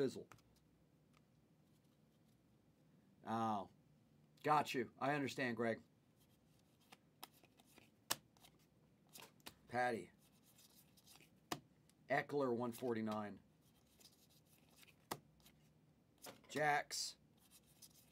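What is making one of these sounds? Trading cards rustle and click as they are flipped in the hands.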